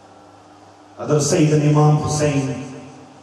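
A man sings a drawn-out, melodic chant into a microphone, heard through a loudspeaker in a reverberant room.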